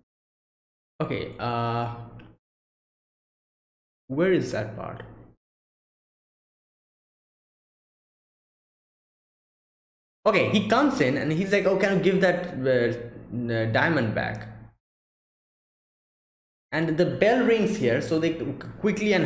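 A young man speaks with animation close to a microphone, pausing in between.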